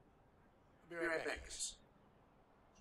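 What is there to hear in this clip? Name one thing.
Another man answers briefly.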